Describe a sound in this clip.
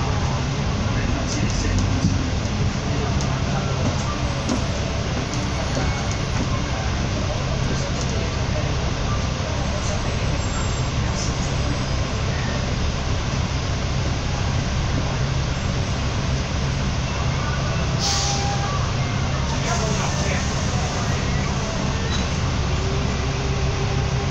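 A bus engine rumbles steadily close by.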